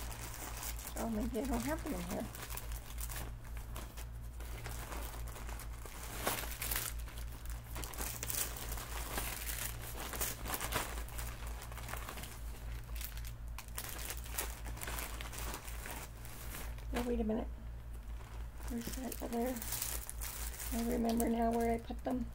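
An older woman speaks briefly and quietly, close by.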